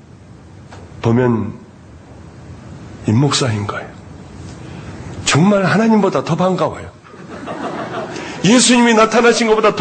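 A middle-aged man speaks calmly into a microphone in a large echoing room, with pauses between phrases.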